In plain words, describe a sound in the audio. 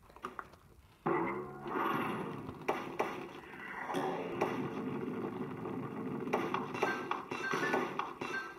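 Lively game music plays through a small loudspeaker.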